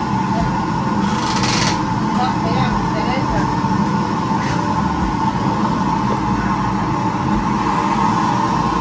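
A hand-pushed stone mill grinds with a low, steady rumble.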